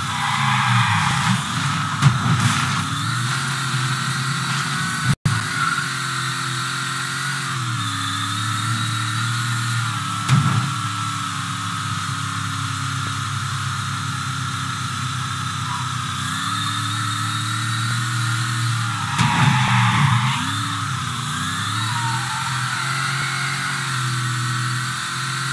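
A car engine drones steadily, its pitch rising and falling as it speeds up and slows.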